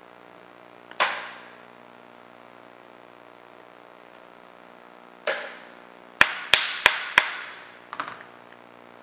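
Plastic parts knock and click as a man handles them.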